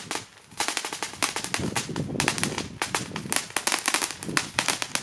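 A firework fountain crackles and fizzes loudly, with rapid popping bursts outdoors.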